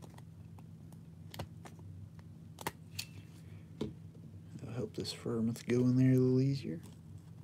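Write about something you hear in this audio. A thin plastic sleeve crinkles and rustles.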